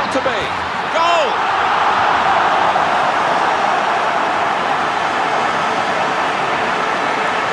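A large crowd roars and cheers loudly.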